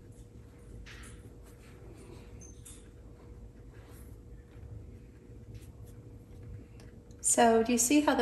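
A paintbrush dabs and brushes softly on paper.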